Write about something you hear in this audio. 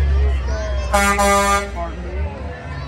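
A fire truck blasts its horn nearby.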